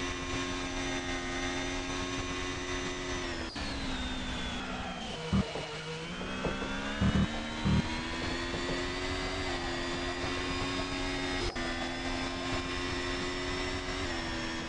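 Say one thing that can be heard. A racing car engine whines loudly, dropping in pitch as it slows and then climbing again.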